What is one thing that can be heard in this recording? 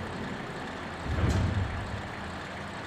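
A deep whooshing boom sounds once.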